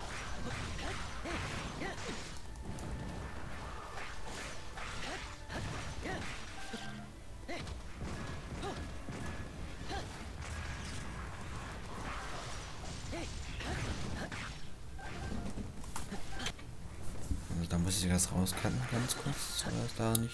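Swords clash and slash rapidly in a video game battle.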